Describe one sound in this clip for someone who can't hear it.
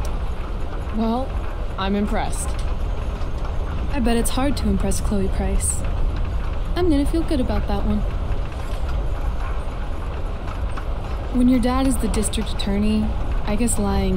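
A young woman speaks calmly and softly.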